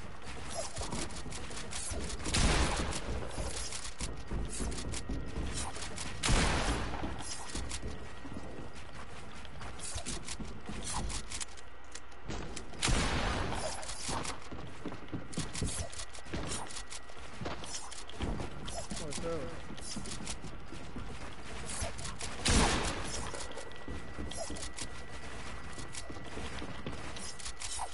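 Wooden building pieces snap into place with quick, repeated clacks.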